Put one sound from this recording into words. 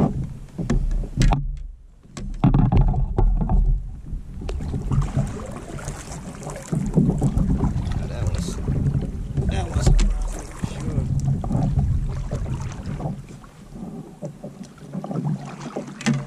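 A paddle splashes through water in steady strokes.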